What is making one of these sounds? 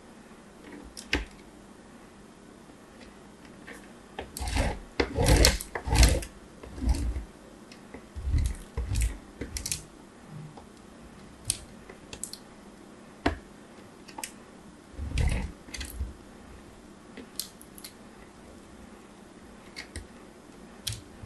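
Small pieces of clay tap and click against a hard surface.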